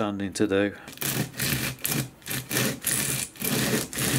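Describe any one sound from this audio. Sandpaper rasps back and forth as a part is rubbed over it.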